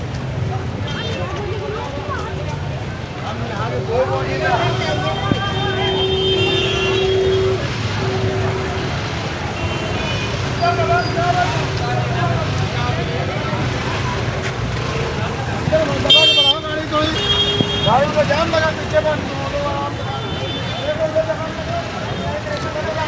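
Vehicle horns honk now and then.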